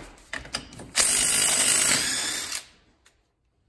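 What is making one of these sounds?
An impact driver whirs loudly.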